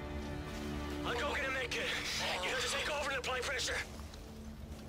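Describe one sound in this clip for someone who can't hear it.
A young man speaks urgently and close by.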